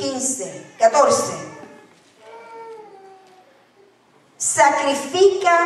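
A young woman speaks with feeling through a microphone in a large, echoing room.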